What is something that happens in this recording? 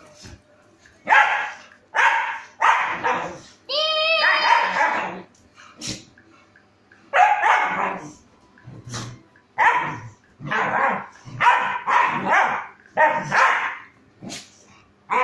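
A dog barks loudly in repeated bursts.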